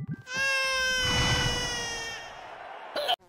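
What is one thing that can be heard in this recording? A baby wails loudly with a high, steady cry.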